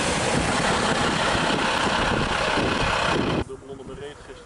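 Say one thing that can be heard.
An ambulance drives past close by with a loud rush of road and wind noise.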